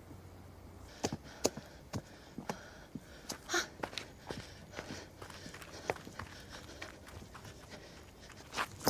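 Footsteps walk on hard ground.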